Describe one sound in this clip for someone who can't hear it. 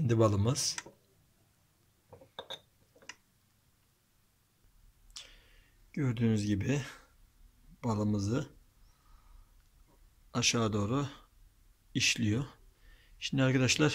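A glass jar clinks as it is handled.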